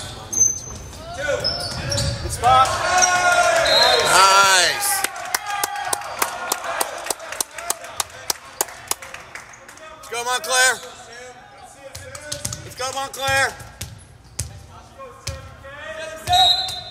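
Young men shout and cheer in a large echoing gym.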